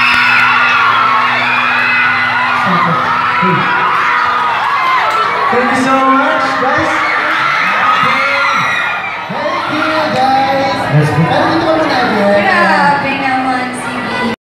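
A young man sings loudly through a microphone and loudspeakers.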